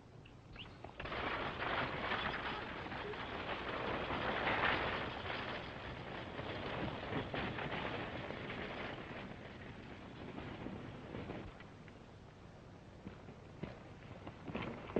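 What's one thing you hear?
Horses' hooves and wheels rumble as a stagecoach rolls on.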